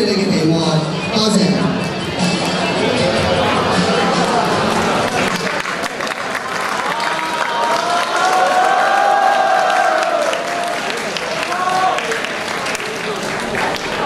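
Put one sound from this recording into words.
A group of young men sings together in a large echoing hall.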